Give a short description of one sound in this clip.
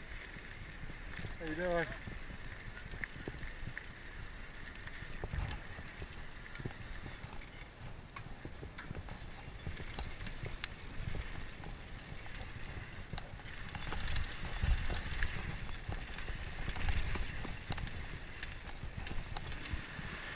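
Bicycle tyres roll and rumble over a dirt trail.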